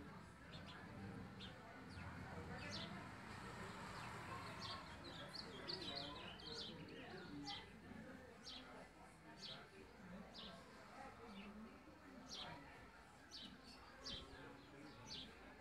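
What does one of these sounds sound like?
Small birds in a cage chirp and tweet in short, high, repeated calls.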